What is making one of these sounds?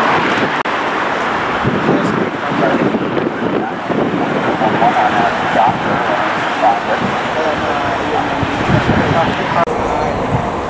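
Twin-engine jet airliners taxi with a low engine whine.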